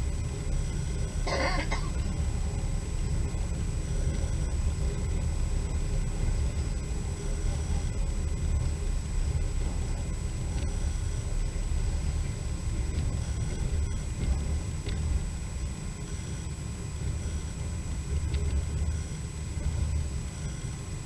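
A vehicle rumbles low and steadily as it travels along.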